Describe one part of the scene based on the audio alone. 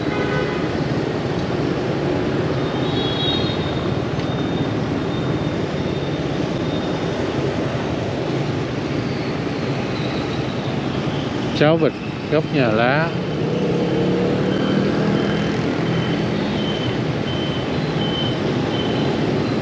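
Motor scooters ride past on a city street.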